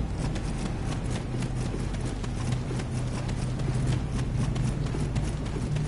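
Footsteps run quickly over rocky ground.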